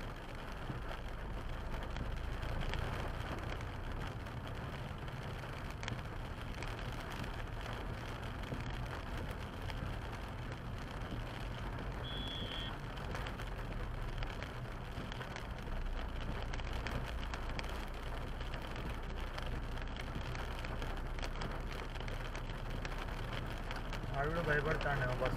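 Windscreen wipers swish back and forth.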